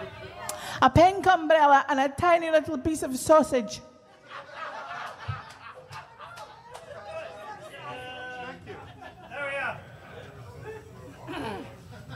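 A man sings loudly into a microphone over loudspeakers.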